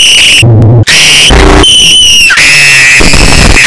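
A young man screams loudly.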